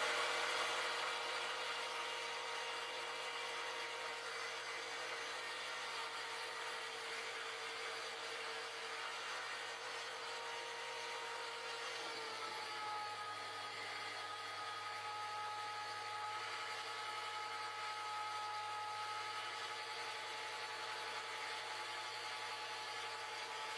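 A brush swishes softly against spinning wood.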